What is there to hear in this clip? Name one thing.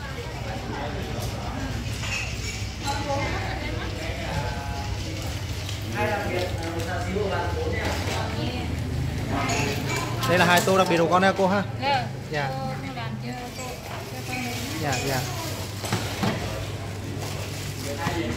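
Men and women chatter in a busy room nearby.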